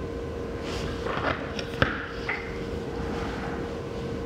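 Fingers tap and handle a phone.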